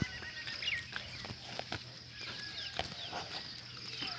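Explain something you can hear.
Footsteps crunch on a gravel track.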